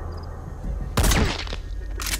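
A rifle fires a single muffled shot.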